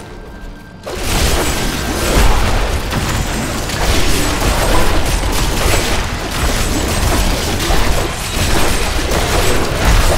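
Swords clash and bones crack in a noisy fight.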